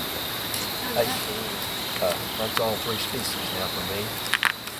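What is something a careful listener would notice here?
A woman talks quietly nearby.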